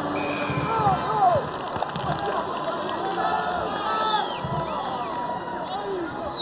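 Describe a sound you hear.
A large crowd murmurs and whistles in an open stadium.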